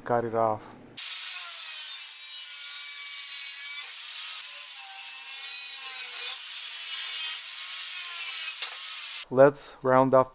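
An angle grinder whines loudly as it cuts through a metal tube.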